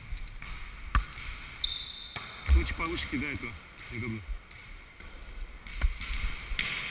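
A ball thuds on a hard floor in a large echoing hall.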